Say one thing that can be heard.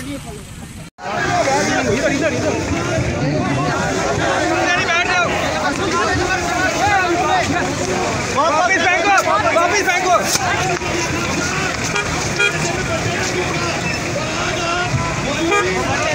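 A crowd of men and women shout and talk over one another outdoors.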